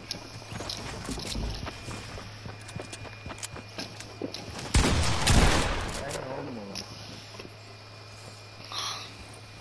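Footsteps patter quickly over the ground.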